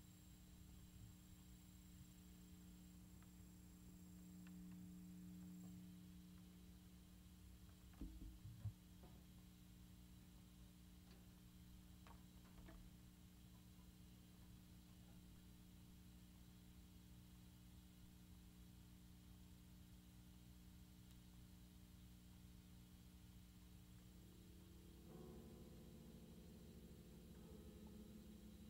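An electric guitar plays a droning, sustained tone through an amplifier.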